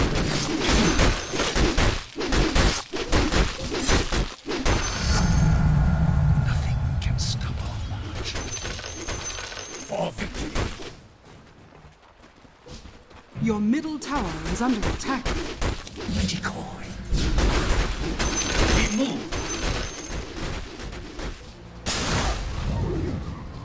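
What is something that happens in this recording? Game spell effects crash and clash in a busy fight.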